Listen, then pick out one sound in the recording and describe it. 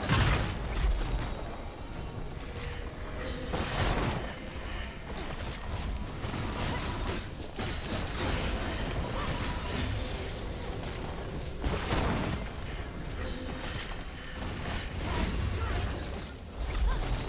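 Fantasy combat effects whoosh and crackle in short bursts.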